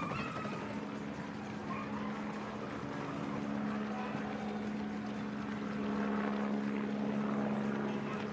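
A motorcycle engine hums steadily nearby.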